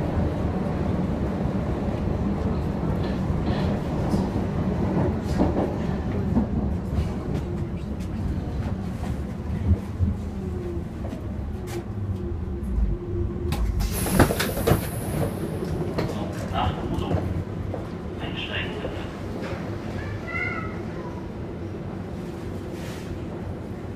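A subway train rumbles steadily along the track.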